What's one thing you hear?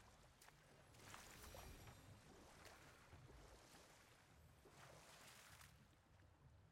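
Oars splash softly in water.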